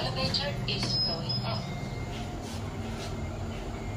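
Lift doors slide open.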